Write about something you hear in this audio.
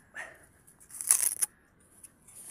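A man bites into a sugarcane stalk with a crunch.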